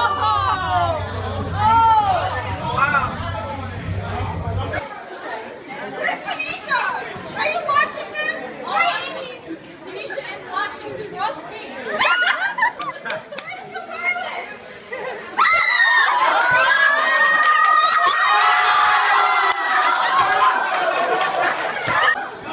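Young women shriek and laugh loudly nearby.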